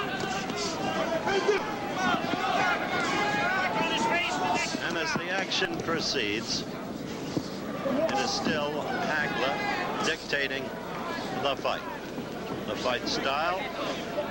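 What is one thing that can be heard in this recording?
Gloved punches thud against a boxer's body.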